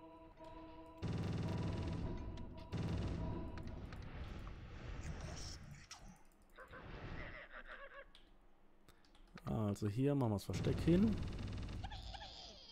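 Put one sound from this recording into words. Gold coins clink and jingle in a video game.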